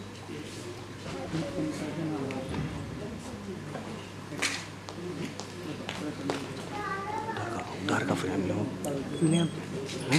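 A man speaks calmly through a microphone and loudspeakers in a large echoing hall.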